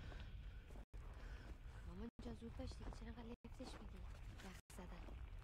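Footsteps crunch slowly through deep snow.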